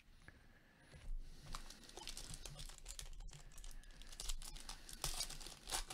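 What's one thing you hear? Foil packets crinkle and rustle in gloved hands.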